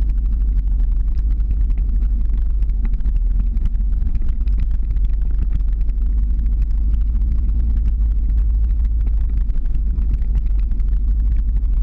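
Skateboard wheels roll and rumble steadily on wet pavement.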